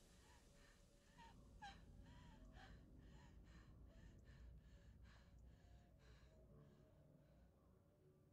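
A man breathes in ragged, heavy gasps close by.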